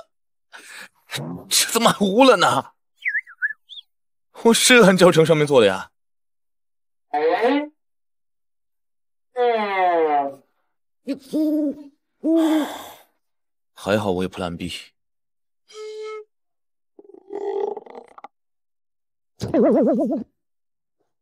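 A young man speaks with frustration, close by.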